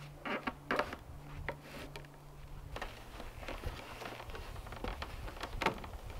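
Wooden logs knock and thud against each other.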